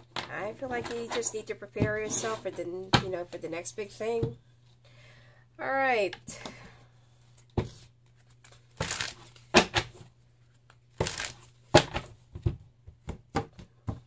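Playing cards are shuffled by hand with a soft flutter.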